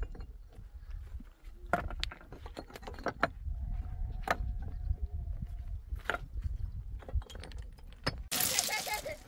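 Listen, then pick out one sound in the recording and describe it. Stones knock and scrape against each other.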